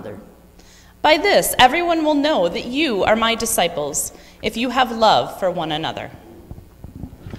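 A woman reads aloud clearly through a microphone, in a room with a slight echo.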